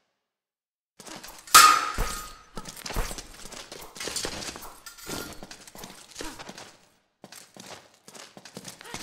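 Steel swords clash and scrape in a duel.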